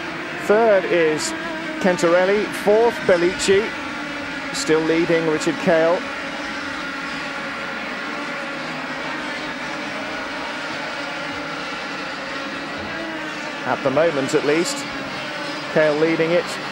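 Kart engines buzz loudly as karts race past.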